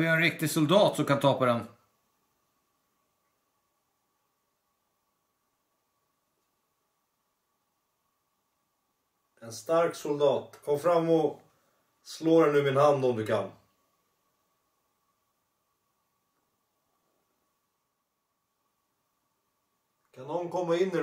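A man speaks calmly and quietly close by, in short bursts with long silences between.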